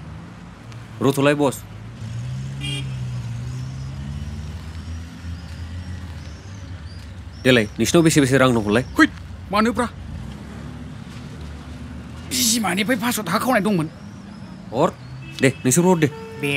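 Young men talk to each other nearby.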